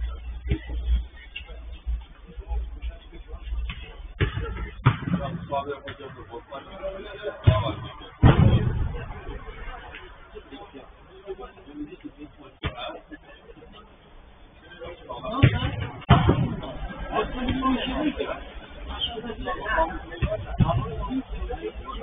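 A football thuds as players kick it on artificial turf.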